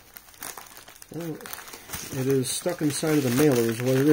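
A plastic mailing envelope rustles and crinkles as it is handled.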